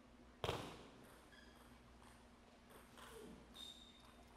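A table tennis ball clicks sharply off paddles and a table.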